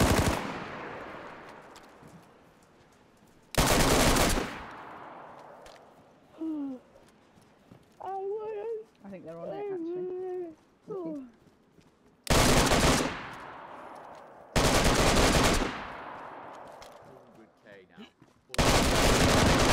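Loud blasts boom and slowly fade away, again and again.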